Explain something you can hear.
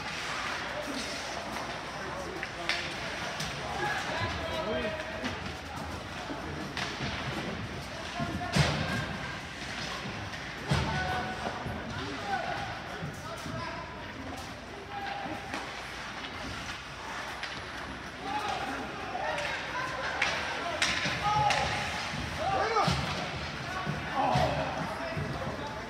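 Spectators talk and call out in the stands.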